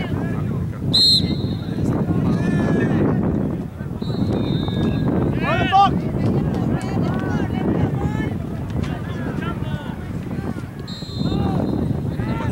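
A referee's whistle blows in short bursts.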